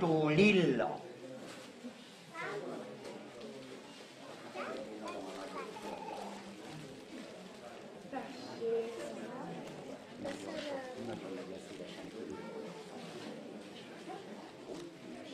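Children and adults chatter quietly in a room.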